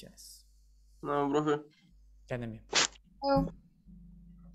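A young man speaks briefly and casually over an online call.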